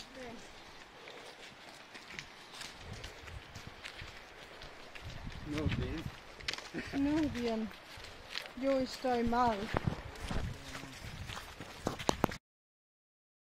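Bare feet step and rustle through dry leaves on the ground.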